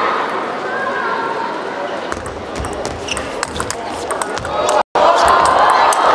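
A ping-pong ball clicks back and forth between paddles and the table in quick rally.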